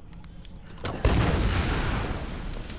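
An arrow is loosed from a bow with a loud burst.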